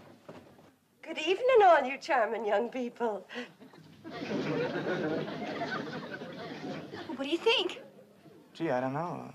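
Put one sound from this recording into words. An older woman speaks cheerfully.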